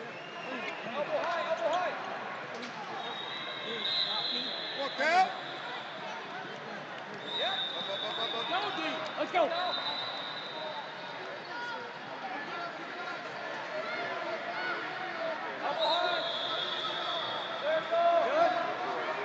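A crowd chatters and calls out, echoing in a large hall.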